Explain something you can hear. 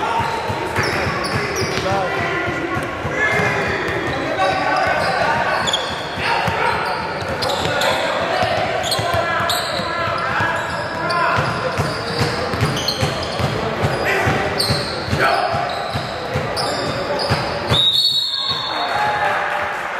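Spectators chatter and call out in the background.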